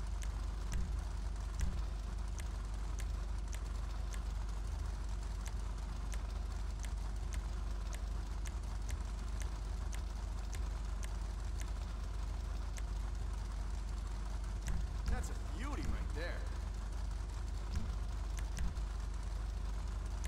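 Short menu clicks tick at a steady pace.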